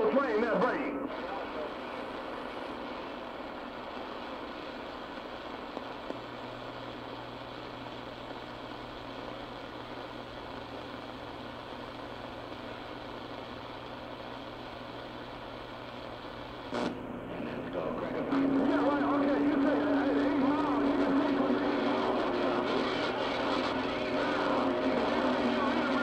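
A shortwave radio hisses with steady static.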